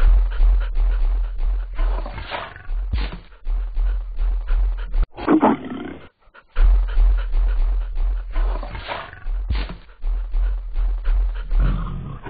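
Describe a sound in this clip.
Heavy dinosaur footsteps thud on the ground.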